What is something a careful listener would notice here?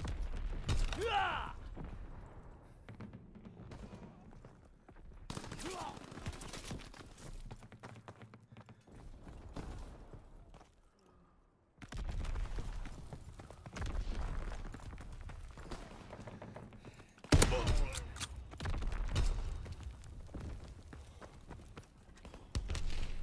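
A shotgun fires loud, booming blasts.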